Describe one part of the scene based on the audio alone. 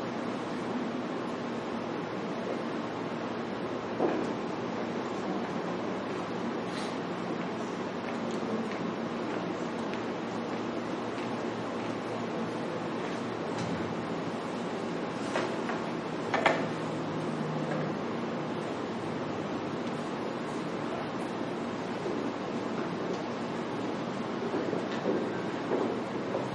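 A man speaks at a distance through a loudspeaker in an echoing room.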